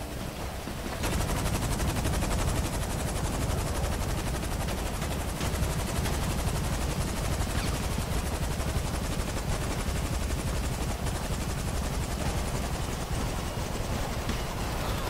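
Helicopter rotors thump loudly and steadily close by.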